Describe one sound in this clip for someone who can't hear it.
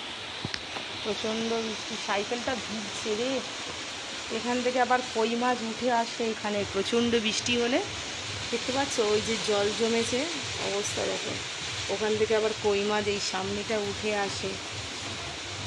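A woman speaks close to a microphone, explaining with animation.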